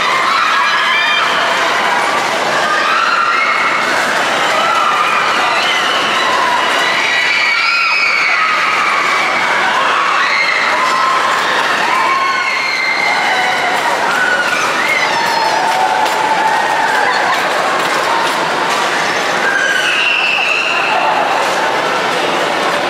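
Ride cars rumble and clatter as they spin around a track.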